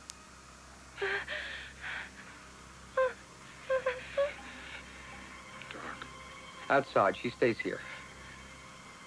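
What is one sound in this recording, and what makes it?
A woman speaks breathlessly close by.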